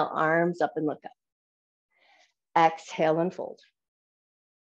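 A woman speaks calmly, giving instructions through a microphone in an online call.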